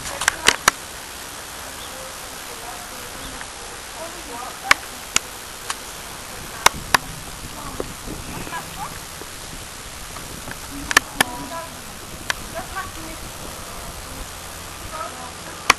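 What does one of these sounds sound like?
Horse hooves thud softly on grass.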